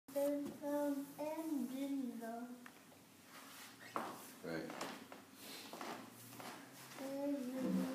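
A young boy sings in a high voice nearby.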